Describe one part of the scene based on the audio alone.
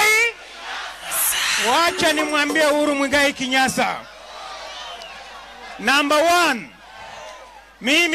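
A large outdoor crowd murmurs and cheers.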